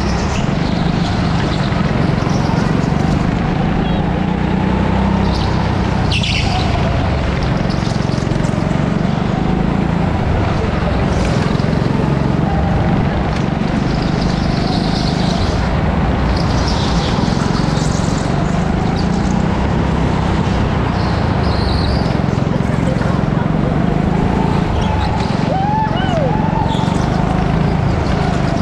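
A go-kart engine drones loudly up close, rising and falling as it speeds up and slows.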